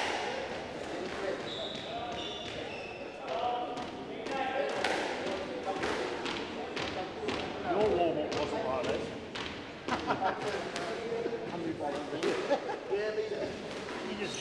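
A squash ball smacks against a wall again and again, echoing in a hall.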